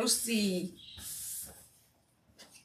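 Tissue paper rustles and crinkles under a hand.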